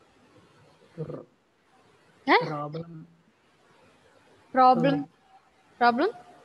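A woman speaks calmly into a computer microphone, in short bursts.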